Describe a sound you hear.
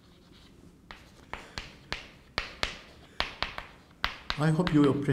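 Chalk taps and clicks sharply on a blackboard.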